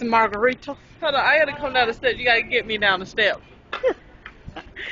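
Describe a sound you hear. A second woman laughs and talks close by.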